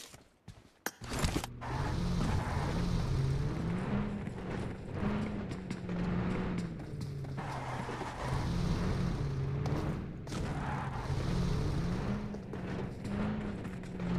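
A vehicle engine drones and revs up and down.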